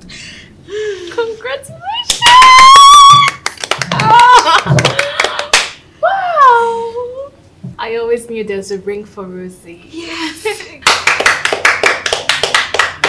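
A young woman laughs and talks with animation close by.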